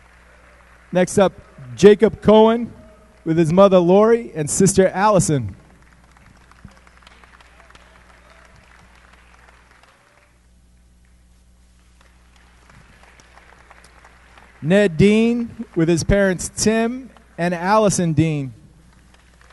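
A man announces through a loudspeaker in a large echoing hall.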